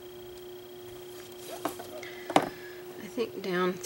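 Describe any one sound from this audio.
A sheet of stiff card rustles and thumps as it is lifted and turned.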